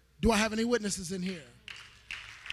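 A man cries out with emotion through a microphone.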